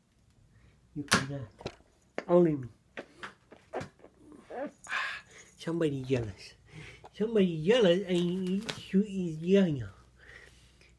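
A man talks playfully, close by.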